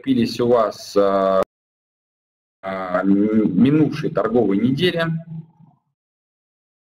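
A young man speaks calmly into a microphone, heard as if through an online call.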